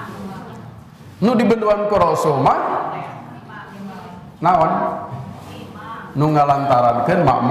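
A man speaks with animation into a microphone, heard through a loudspeaker in an echoing room.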